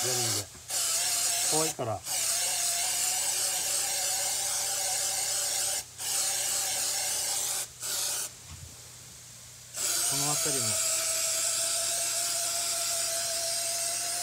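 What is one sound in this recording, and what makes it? An aerosol spray hisses steadily in short bursts.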